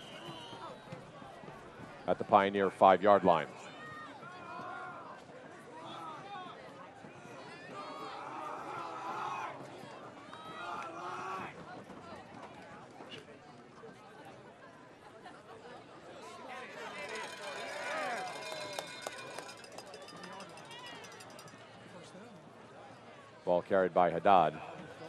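Football players shout calls on a field outdoors.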